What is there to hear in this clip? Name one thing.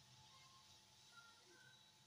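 A spatula stirs liquid in a pot.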